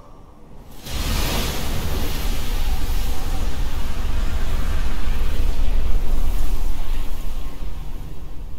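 A deep whoosh of dark magic swirls and roars.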